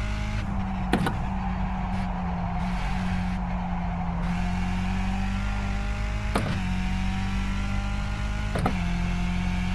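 Gear shifts clack sharply.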